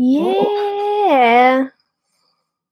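A young woman speaks cheerfully over an online call.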